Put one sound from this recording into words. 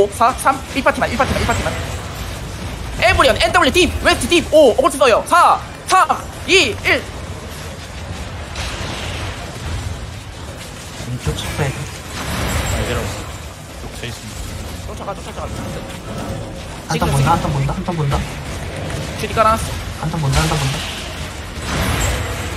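Magic spells crackle and burst in a chaotic battle.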